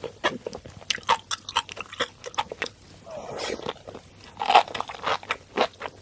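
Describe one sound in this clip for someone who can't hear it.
A young woman chews crunchy seaweed close to a microphone, with wet popping crunches.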